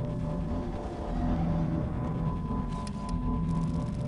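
A deep electric hum drones from a shimmering energy beam.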